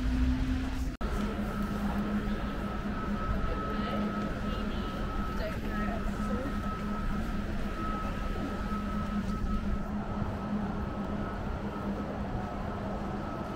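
Footsteps patter on a hard walkway.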